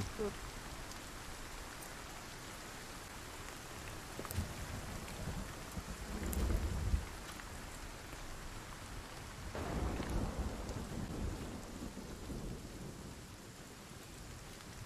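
A torch flame crackles and hisses.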